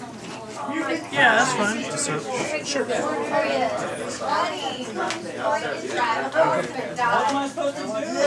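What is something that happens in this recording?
Playing cards shuffle and rustle in a hand.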